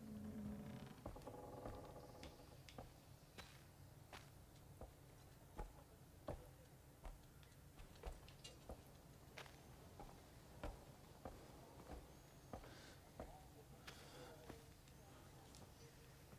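Footsteps walk steadily over sand and wooden boards.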